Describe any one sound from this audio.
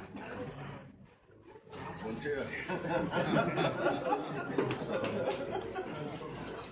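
A crowd of men talk and chatter close by.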